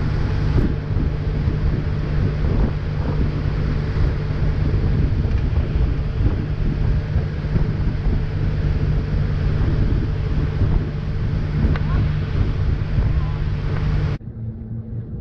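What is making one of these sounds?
A boat engine roars steadily as the boat speeds over water.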